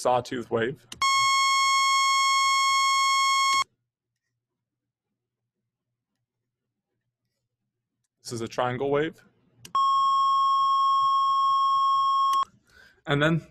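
A steady high-pitched test tone plays, then stops.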